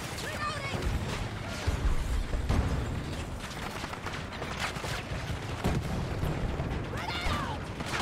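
Gunfire and explosions boom in a video game.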